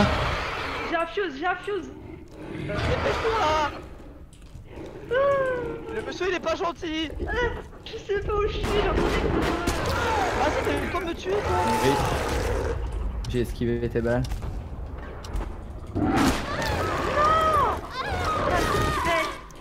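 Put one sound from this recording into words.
Two young men talk with animation over microphones.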